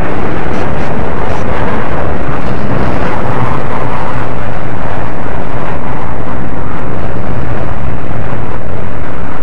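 A jet engine roars loudly and steadily.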